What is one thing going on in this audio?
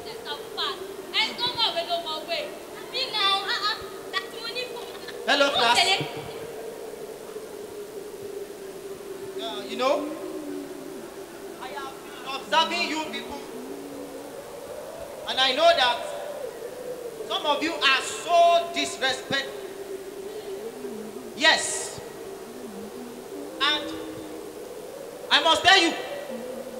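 A young man speaks with animation into a microphone, heard through loudspeakers in a large echoing hall.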